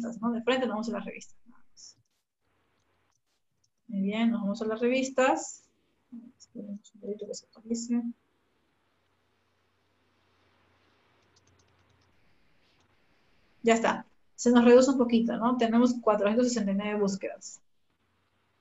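A young woman speaks calmly through a computer microphone, in an online call.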